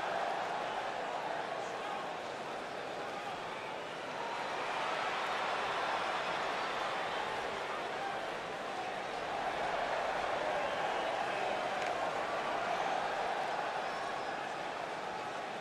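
A large crowd cheers and roars steadily in an echoing arena.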